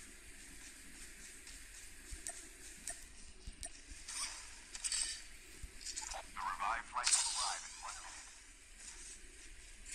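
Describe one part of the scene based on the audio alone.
A character's footsteps thud softly over grass.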